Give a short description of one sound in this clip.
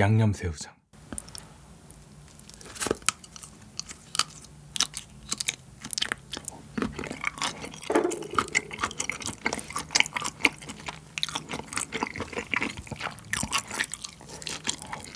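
A young man chews food with wet, crunchy sounds close to a microphone.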